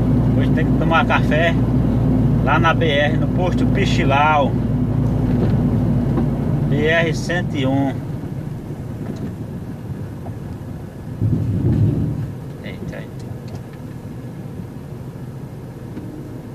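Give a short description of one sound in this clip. A vehicle's engine drones steadily while driving, then drops to a quieter idle as the vehicle slows and stops.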